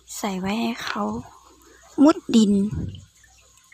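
A hand splashes and swishes through shallow water.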